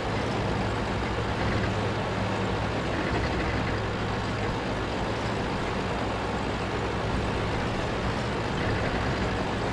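A heavy tank engine rumbles steadily as the tank rolls forward.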